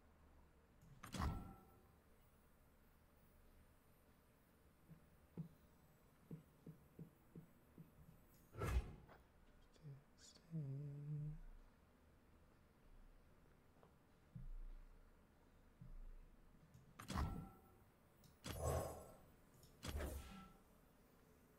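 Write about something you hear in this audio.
Video game sound effects whoosh and chime as cards are played.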